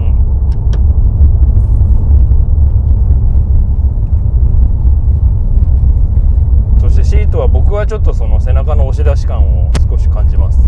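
A car engine rumbles low and steady from inside the cabin.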